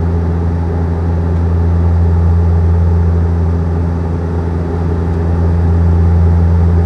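An aircraft engine drones with a steady, low hum.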